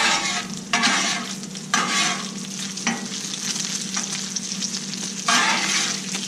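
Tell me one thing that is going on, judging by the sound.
A metal spatula scrapes across a griddle.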